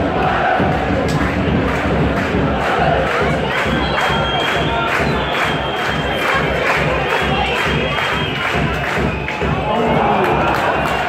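A crowd of fans claps in a steady rhythm.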